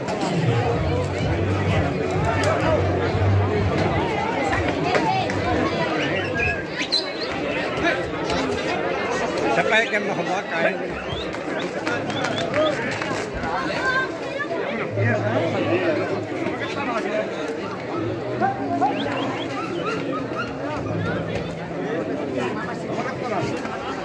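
A large outdoor crowd chatters and shouts throughout.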